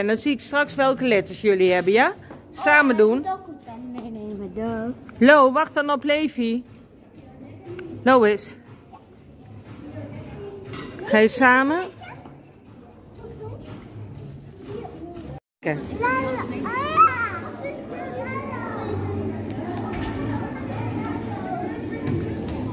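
Young children shout and squeal with excitement.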